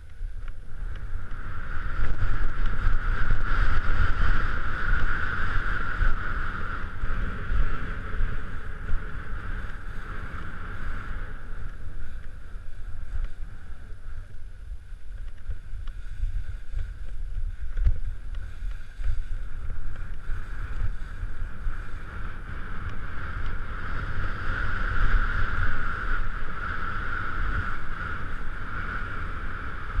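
Skis scrape and hiss over crusty snow.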